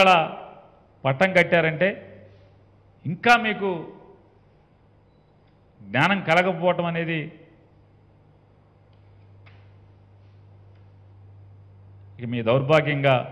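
A middle-aged man speaks into a microphone in short, measured phrases with pauses.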